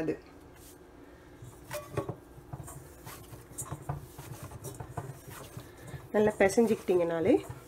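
Hands knead and squish dough against a metal bowl.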